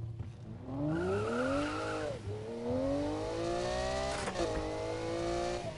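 A sports car engine revs hard, rising in pitch, then drops as the gear shifts and climbs again.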